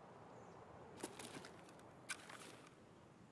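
A rifle clicks and rattles as it is raised to aim.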